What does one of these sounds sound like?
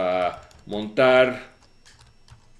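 A man speaks briefly and calmly into a nearby microphone.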